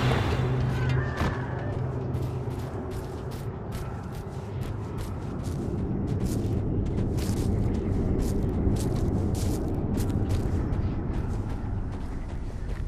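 A game character's footsteps patter quickly over the ground.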